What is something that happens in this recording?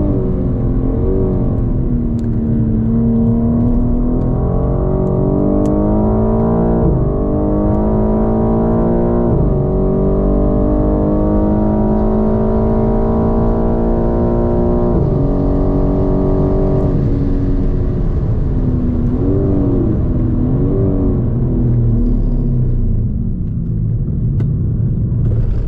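A car engine roars loudly, rising in pitch through the gears and dropping at each shift.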